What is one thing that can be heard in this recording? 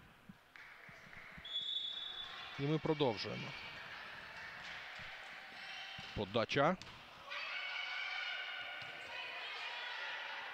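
A crowd cheers and chants in an echoing indoor hall.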